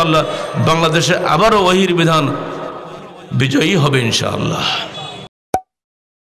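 An elderly man speaks with animation through a microphone, heard over loudspeakers.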